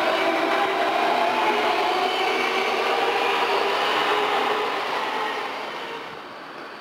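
An electric train rolls past with a high whining hum.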